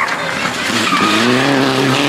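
Gravel sprays from a rally car's tyres in a corner.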